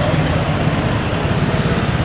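A motor scooter rides past.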